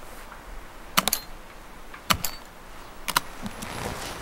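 Suitcase latches click open.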